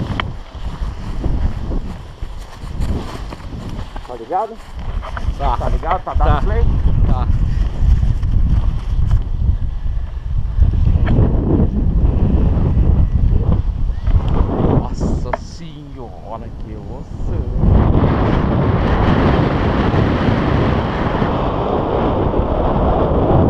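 Wind buffets and rumbles across a microphone.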